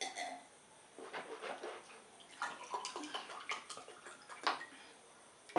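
Water pours from a plastic bottle into a glass.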